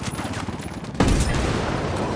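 A rifle shot booms loudly.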